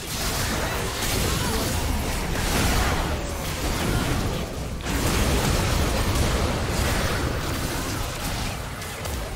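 Magic spells crackle and boom in rapid, overlapping bursts.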